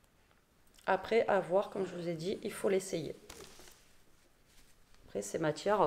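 Fabric rustles as a garment is shaken out.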